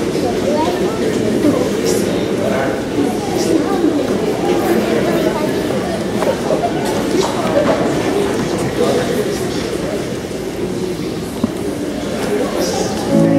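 Several men sing together in a large echoing hall.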